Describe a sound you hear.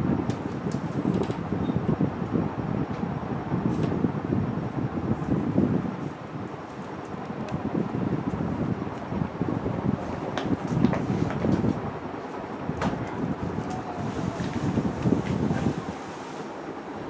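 Cloth rustles and flaps close by.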